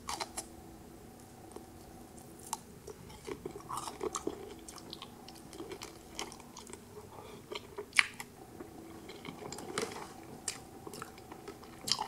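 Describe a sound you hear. A woman bites into crisp food with a sharp crunch.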